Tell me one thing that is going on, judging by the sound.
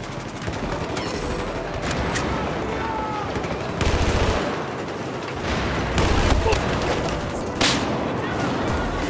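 Gunshots fire in bursts, echoing through a large hall.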